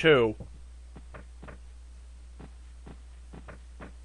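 Footsteps tread softly on a floor.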